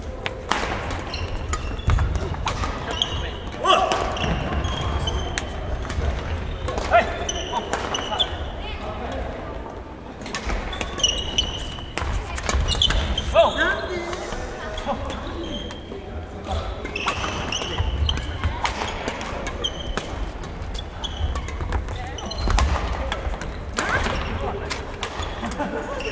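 Shuttlecocks are struck with sharp racket pops in a large echoing hall.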